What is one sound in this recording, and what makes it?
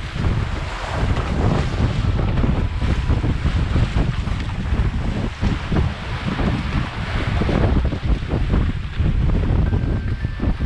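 Water splashes and rushes past a boat's hull.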